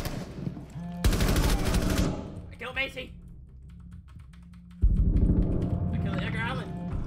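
A rifle fires rapid bursts at close range.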